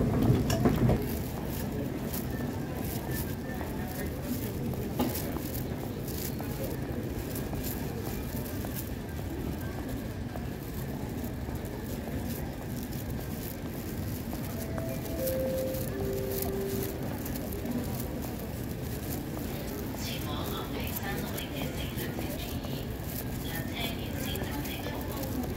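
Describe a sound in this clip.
Footsteps echo across a large hall.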